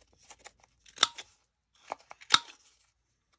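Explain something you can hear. A paper punch clicks sharply as it cuts.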